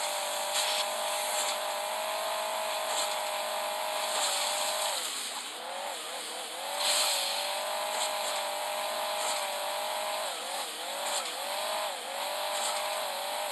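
A video game engine hums steadily, dipping in pitch at times.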